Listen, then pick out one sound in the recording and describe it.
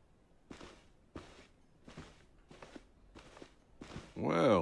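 Footsteps tap at an even pace on a hard floor.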